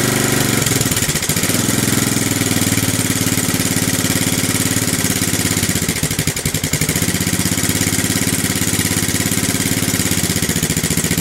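A quad bike engine idles close by with a loud, rough putter that revs up now and then.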